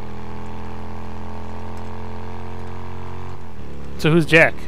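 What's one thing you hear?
A motorcycle engine idles with a steady low hum.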